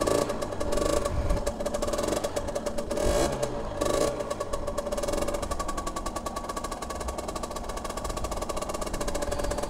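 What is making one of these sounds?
A motorcycle engine idles and revs with a steady pulsing hum.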